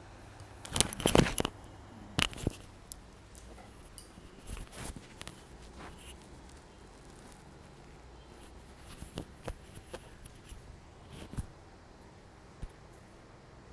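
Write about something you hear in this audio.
A microphone clipped to clothing rustles and thumps as it is handled.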